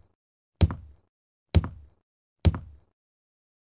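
Footsteps thud slowly on wooden stairs.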